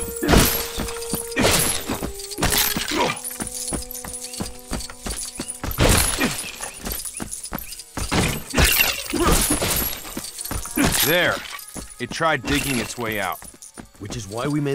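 Plastic pieces smash apart with clattering crashes.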